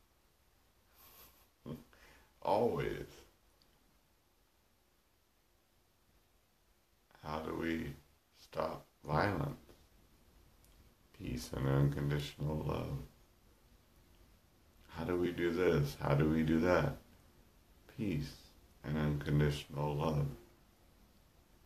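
A middle-aged man speaks calmly and warmly close to the microphone.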